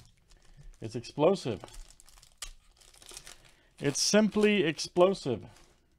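A foil wrapper crinkles and rustles.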